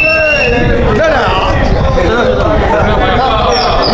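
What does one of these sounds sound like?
A group of men talk and cheer close by.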